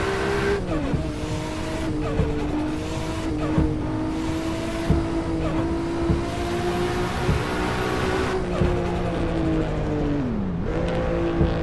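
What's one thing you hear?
A gearbox clunks as the car shifts gear.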